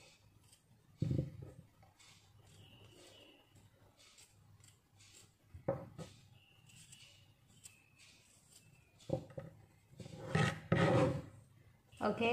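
A knife chops on a plastic board with sharp knocks.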